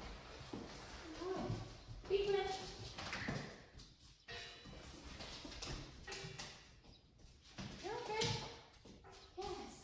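A woman talks to a dog in an encouraging voice, in a room with some echo.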